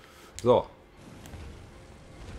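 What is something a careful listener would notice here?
A flame burns with a soft crackle.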